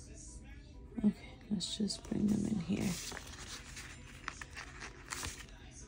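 A sheet of stickers rustles as it is handled.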